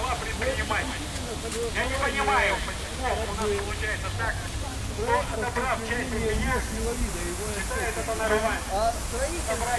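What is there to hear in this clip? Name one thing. A crowd of adult men and women talks outdoors, with voices overlapping.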